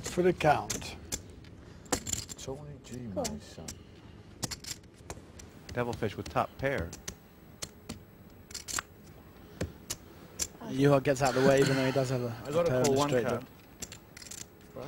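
Poker chips click and clatter as they are stacked and handled.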